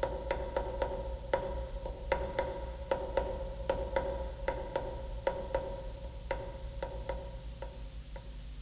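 High heels click steadily on a paved sidewalk and slowly fade.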